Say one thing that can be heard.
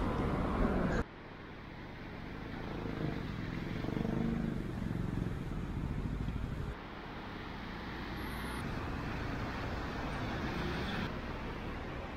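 Cars drive past on a wet street nearby.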